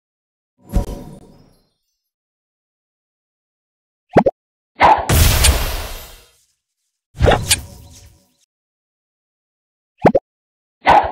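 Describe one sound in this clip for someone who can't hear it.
Game sound effects chime and pop as bubbles are shot and burst.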